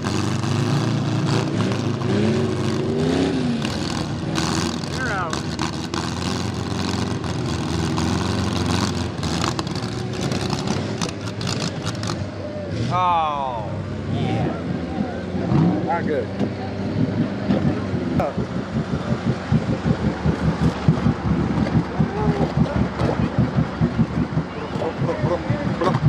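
A vehicle engine revs and roars as it churns through deep mud.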